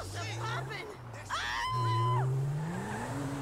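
Tyres screech on the road.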